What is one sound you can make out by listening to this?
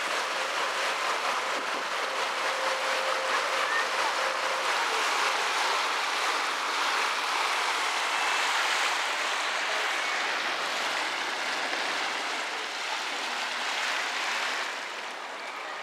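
Water splashes and laps against a moving boat.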